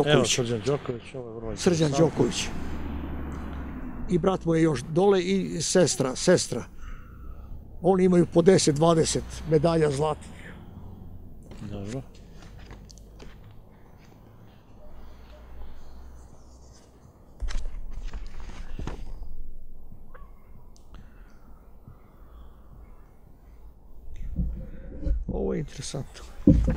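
An elderly man speaks calmly into a nearby microphone.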